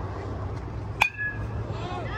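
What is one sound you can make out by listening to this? An aluminium bat sharply cracks against a baseball.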